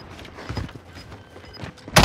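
A gun's metal parts click and clatter as it is handled.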